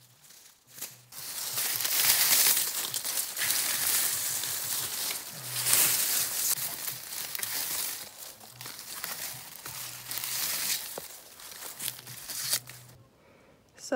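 Dry leaves and stalks rustle and crackle close by.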